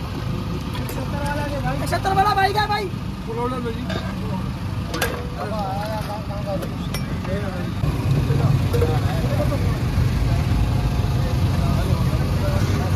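Men talk nearby in a busy outdoor crowd.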